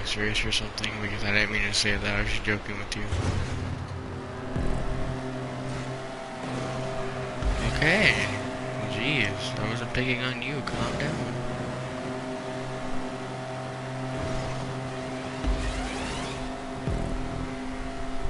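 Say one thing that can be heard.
A car engine hums steadily as the car races along.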